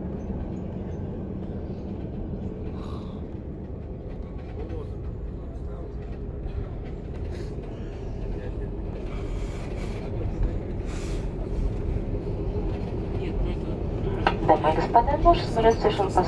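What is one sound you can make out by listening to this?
Wheels rumble and thump along a runway, growing louder.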